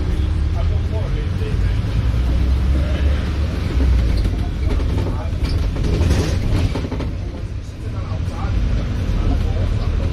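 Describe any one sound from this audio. Traffic passes by on the road.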